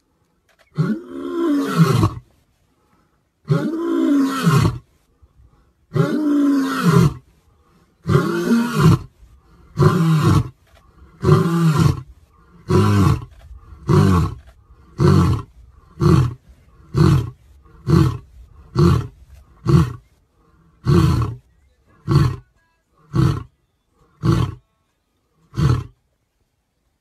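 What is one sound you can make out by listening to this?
A lion roars close by in a series of deep grunts that grow shorter and quieter.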